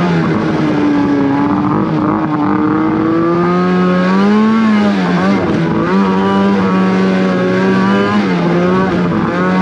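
A snowmobile engine drones loudly up close, rising and falling in pitch as the throttle changes.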